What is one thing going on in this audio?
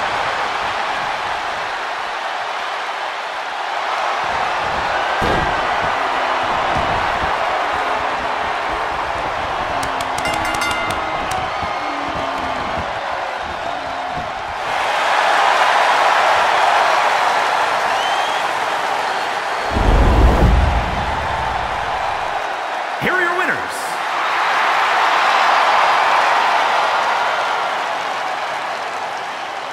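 A large arena crowd cheers and roars, swelling loudly at times.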